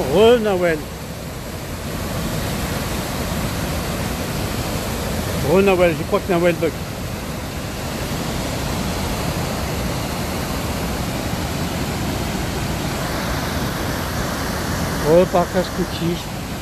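Water rushes and roars steadily down a steep weir.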